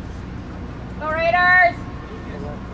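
A woman shouts loudly close by.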